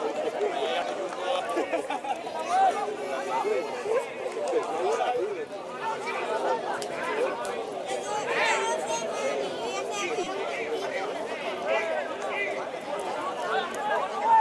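Men talk and call out to each other nearby, outdoors.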